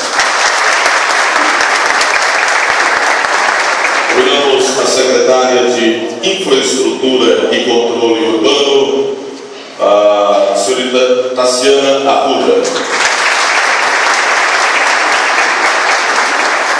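A crowd applauds steadily in a large room.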